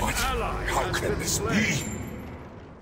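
Fantasy game combat sounds clash and crackle in a short burst.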